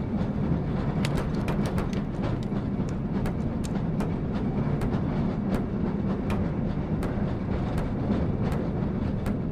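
Cart wheels click rapidly over rail joints.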